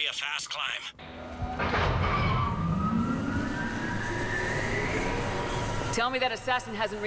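An elevator hums and whirs as it climbs.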